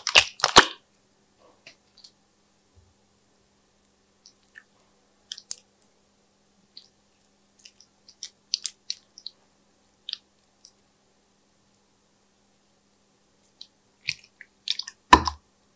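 Soft slime squishes and crackles between fingers.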